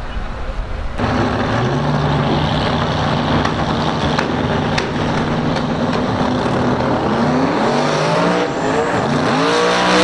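A racing car engine idles with a deep rumble.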